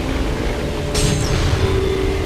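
Magical orbs burst with a bright, sparkling chime.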